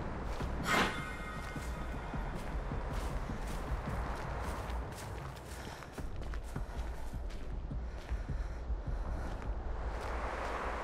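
Footsteps rustle through tall grass at a quick pace.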